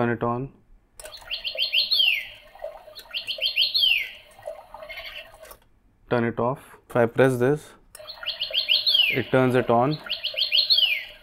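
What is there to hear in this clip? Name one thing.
A small bird chirps in quick, repeated trills close by.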